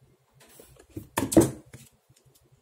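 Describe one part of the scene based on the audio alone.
A plastic toy taps on a table.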